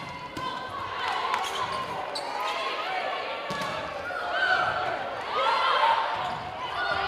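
A crowd cheers loudly in a large echoing hall.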